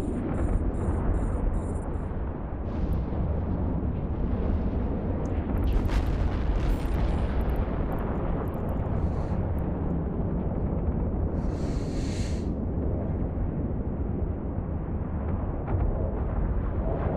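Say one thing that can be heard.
Heavy weapons fire and explosions rumble steadily.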